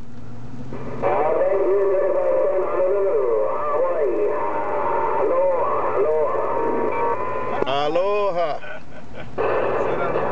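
Radio static hisses and whines through a loudspeaker.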